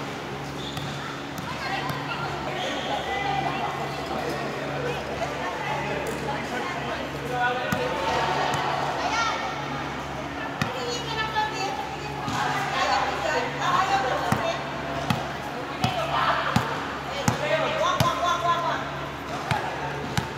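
Young girls chatter and call out in a large echoing hall.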